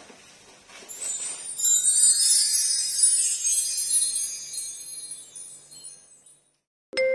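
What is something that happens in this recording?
Plastic wrapping crinkles loudly.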